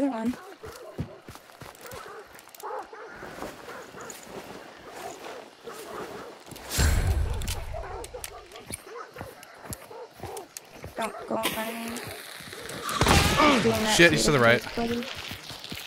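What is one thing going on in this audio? Footsteps crunch on dry leaves and undergrowth.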